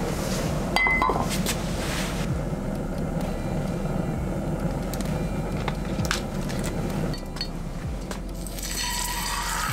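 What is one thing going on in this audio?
Hot oil sizzles gently in a pan.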